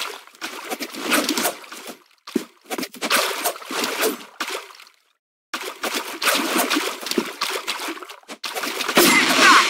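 A knife swishes through the air.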